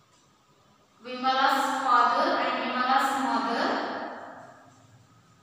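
A woman speaks aloud in an echoing room.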